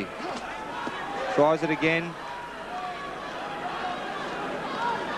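A large crowd murmurs and cheers in a big echoing hall.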